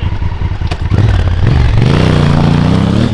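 A motorcycle engine revs up loudly and pulls away.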